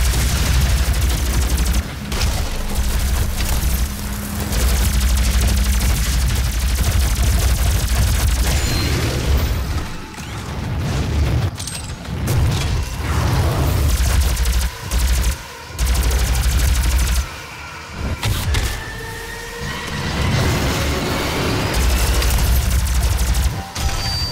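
A rapid-fire energy gun shoots crackling bursts.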